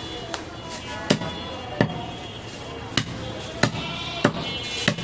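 A cleaver chops meat on a wooden block with sharp, repeated thuds.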